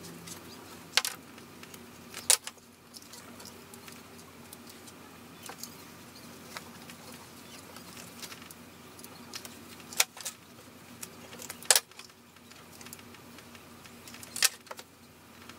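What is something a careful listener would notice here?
A stapler clicks sharply now and then.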